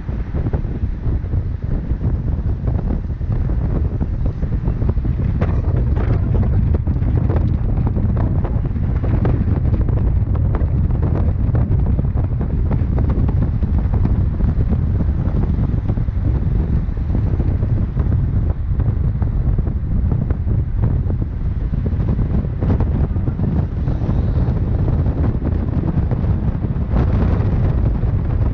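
Wind rushes past an open window.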